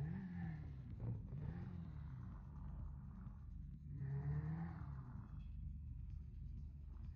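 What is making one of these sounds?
A motorcycle engine idles and revs with a low, rumbling drone.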